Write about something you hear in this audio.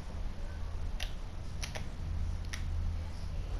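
Light knocks sound as a slice of toast bumps against a box.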